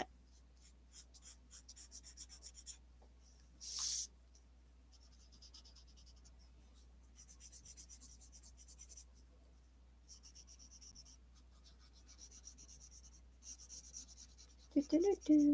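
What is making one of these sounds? A marker softly scratches across paper.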